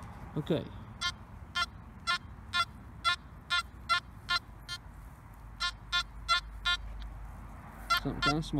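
A metal detector beeps in short, repeated high tones.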